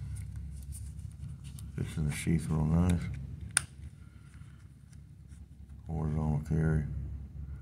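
A leather sheath creaks and rustles as it is handled.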